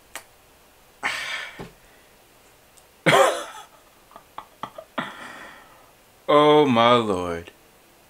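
A young man speaks and sings playfully into a close microphone.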